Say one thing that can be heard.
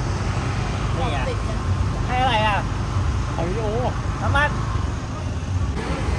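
Men chatter nearby in the street.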